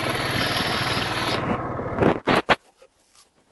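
A 150cc four-stroke scooter rides along.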